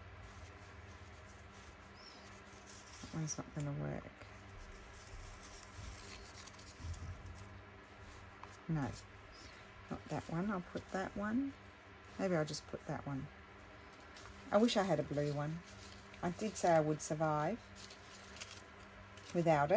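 Paper rustles and crinkles softly as it is handled.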